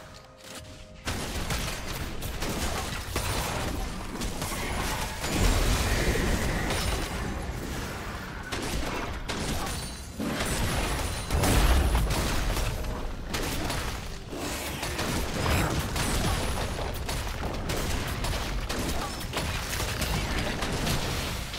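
Magic blasts, hits and clashing weapons from a video game battle ring out in quick succession.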